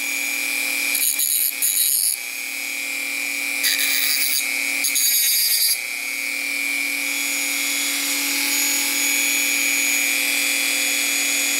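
A small rotary tool whines steadily at high speed.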